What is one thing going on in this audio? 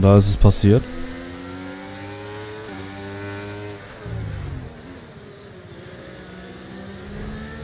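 A racing car engine whines loudly and shifts through gears.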